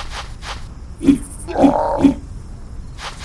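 A big cat snarls.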